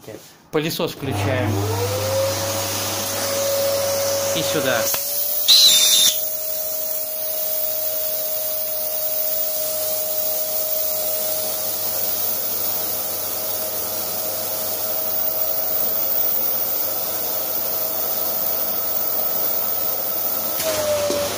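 A vacuum cleaner starts up and hums steadily.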